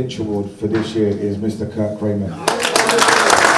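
A man speaks into a microphone through a loudspeaker in a room.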